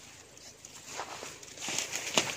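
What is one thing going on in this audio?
Boots rustle through dry grass and leaves.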